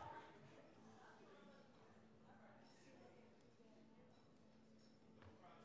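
Several adults murmur and talk quietly at a distance in an echoing hall.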